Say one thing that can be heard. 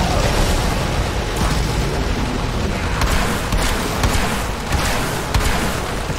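A deep rumbling roar drones steadily.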